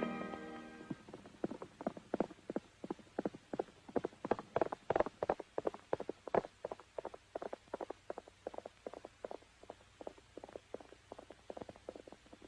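A horse gallops with quick, steady hoofbeats.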